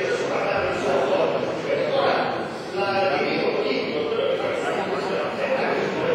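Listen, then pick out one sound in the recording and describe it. Several men talk over each other in the background.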